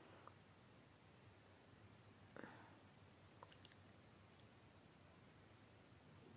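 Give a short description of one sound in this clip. Lipstick rubs softly across a woman's lips.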